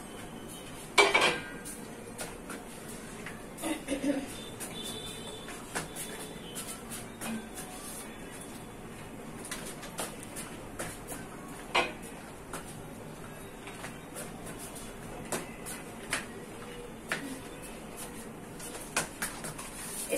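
Pots and utensils clink and clatter.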